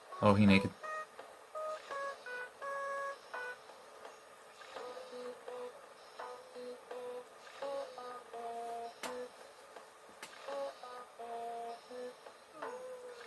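Quick chirpy electronic babbling tones play in bursts, like a cartoon voice from a game.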